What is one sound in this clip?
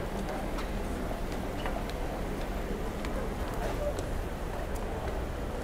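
Footsteps tap on a pavement close by.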